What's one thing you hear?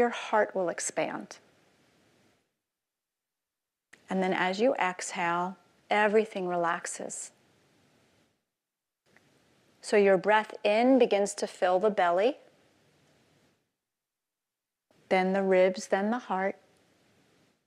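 A woman speaks calmly through a microphone, with pauses.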